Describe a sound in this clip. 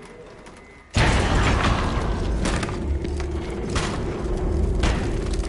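A hand slams hard against window glass.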